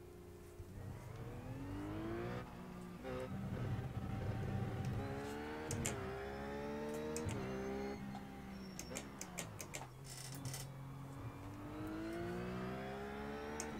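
A race car engine accelerates through the gears.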